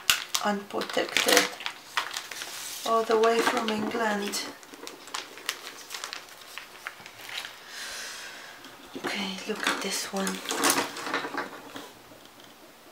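Paintbrushes clatter and rustle against cardboard.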